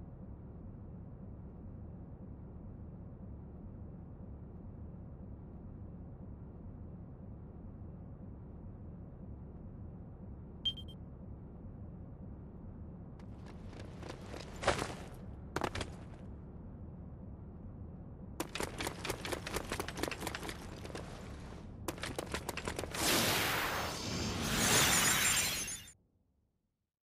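A low ambient hum drones steadily.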